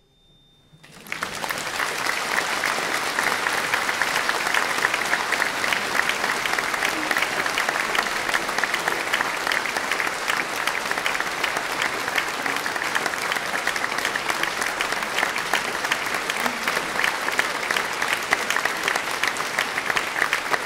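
An audience applauds loudly and steadily.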